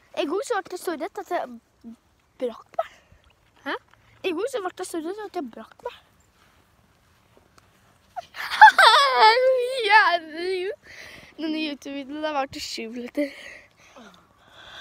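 A young girl talks close to the microphone.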